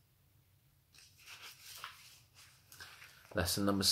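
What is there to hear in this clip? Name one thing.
Paper pages rustle as a page is turned.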